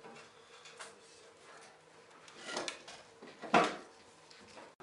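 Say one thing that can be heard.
A metal stove door clanks open and shut.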